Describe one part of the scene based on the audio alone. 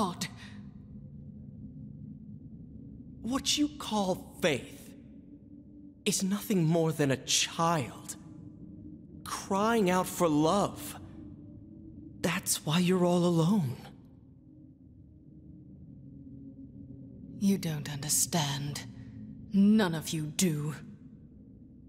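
A man speaks with scornful animation, close by.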